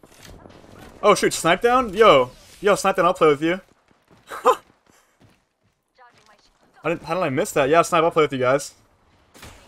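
A young man talks loudly with excitement into a close microphone.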